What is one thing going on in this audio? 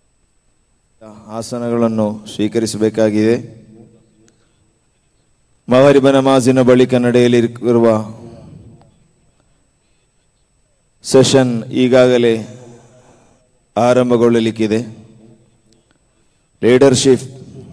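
A young man speaks forcefully into a microphone, in bursts, with a strong echo trailing each phrase.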